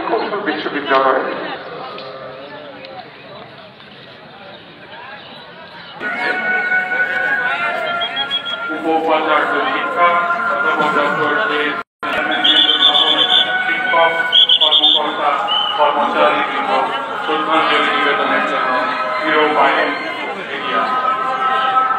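A crowd of men and women murmurs and talks outdoors.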